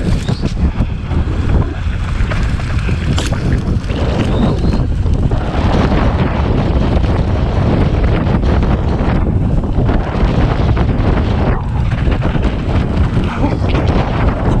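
Wind rushes and buffets loudly and steadily.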